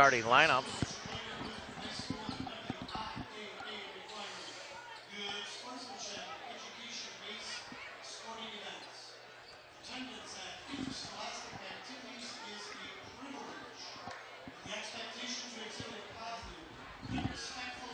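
People chatter in a crowd nearby.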